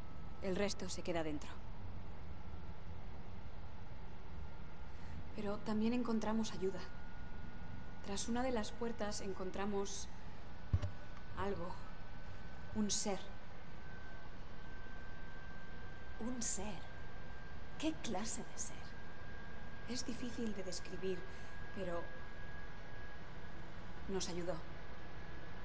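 A woman speaks calmly and quietly, close by.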